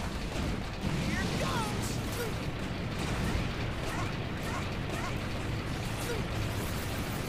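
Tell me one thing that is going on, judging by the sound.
Energy blasts zap in quick bursts.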